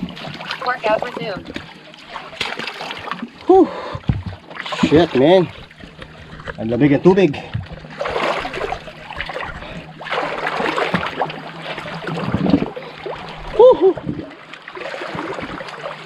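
Water splashes and laps against rocks.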